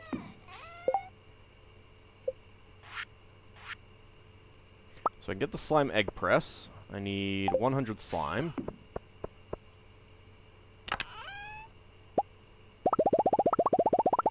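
Soft game menu blips and pops sound now and then.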